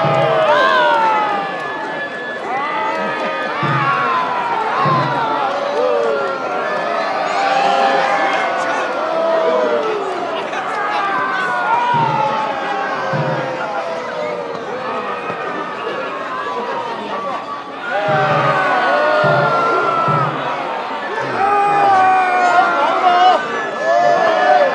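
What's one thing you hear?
A crowd of men and women shouts and chants loudly, with animation, close by.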